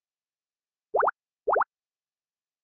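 Two short electronic menu beeps sound in quick succession.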